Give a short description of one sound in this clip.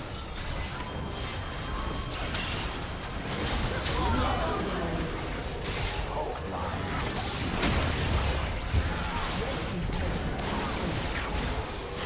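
Fantasy game spell effects crackle and whoosh during a fight.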